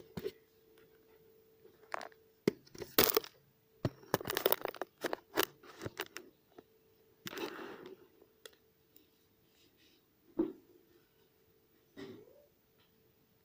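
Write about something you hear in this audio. Plastic wrapping crinkles and rustles as it is handled close by.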